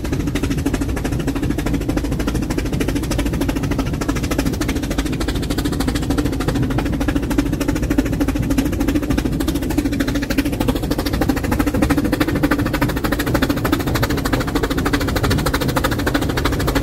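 A steam locomotive chuffs rhythmically.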